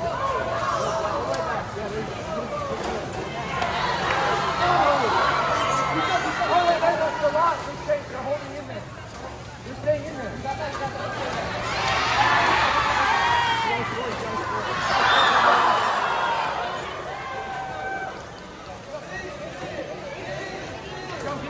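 A crowd of people chatters and calls out nearby.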